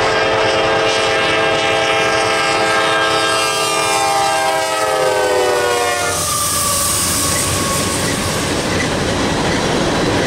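A diesel locomotive engine roars past up close.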